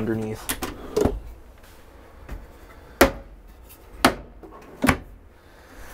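Cabinet drawers and doors bump and knock shut.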